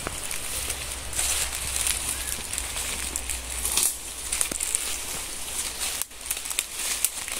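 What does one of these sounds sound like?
Footsteps crunch and rustle through dry leaves.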